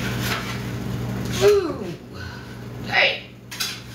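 An oven door creaks open.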